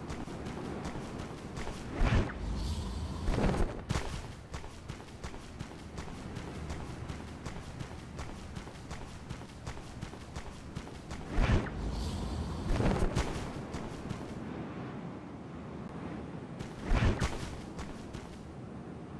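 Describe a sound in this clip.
Quick footsteps patter on hard stone.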